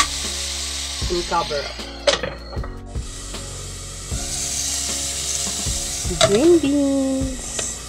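A glass lid clatters and clanks on a metal pan.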